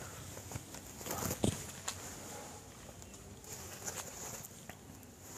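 Cloth rustles as fabric is lifted and handled.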